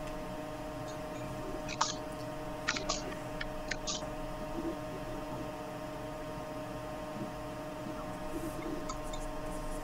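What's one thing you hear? A man speaks quietly through an online call.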